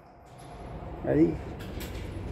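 A man speaks briefly up close.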